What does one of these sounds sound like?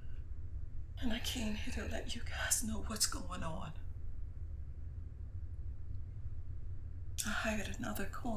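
A woman speaks close by, tense and upset.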